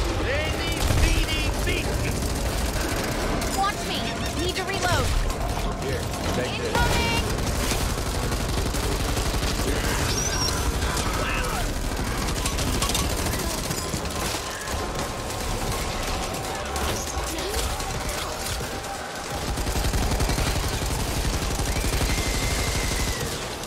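A heavy machine gun fires in rapid, rattling bursts.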